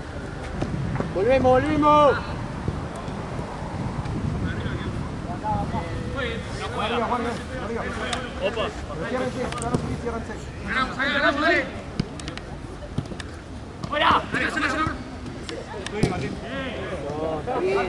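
Young men shout to each other across an open pitch.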